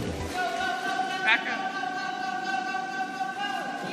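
Water splashes in a pool.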